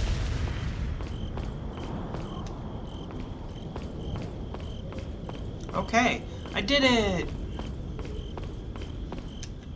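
Footsteps tread on stone.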